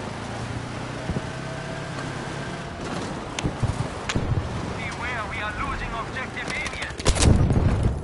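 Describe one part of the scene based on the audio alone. A vehicle engine rumbles and whines as it drives over rough ground.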